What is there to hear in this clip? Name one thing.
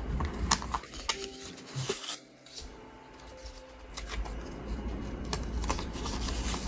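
Plastic binder sleeves crinkle and rustle under a hand.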